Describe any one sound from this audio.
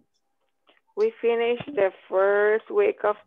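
A young woman calls out loudly over an online call, with drawn-out words.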